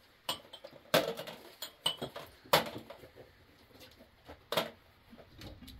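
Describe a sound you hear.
Glass and metal clink as dishes are handled.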